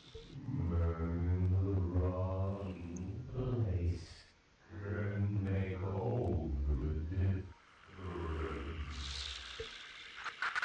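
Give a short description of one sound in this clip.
A man speaks calmly into a headset microphone, close by.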